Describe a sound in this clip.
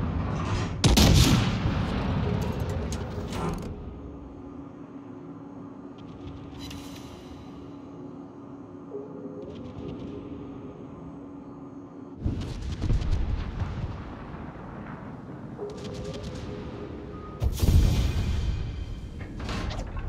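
A battleship's main guns fire in heavy booming salvos.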